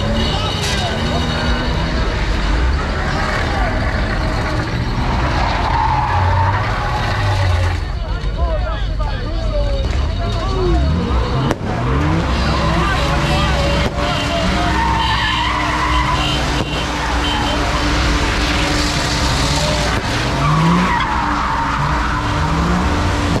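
Car engines idle and rumble close by.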